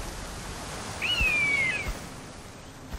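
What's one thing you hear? An eagle gives a shrill, falling cry.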